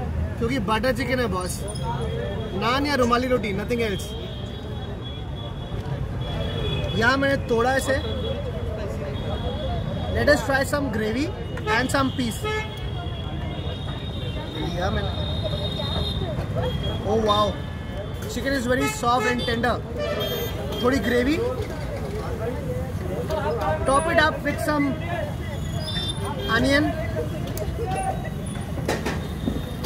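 Street traffic hums outdoors in the background.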